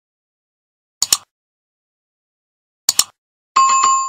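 A mouse button clicks twice.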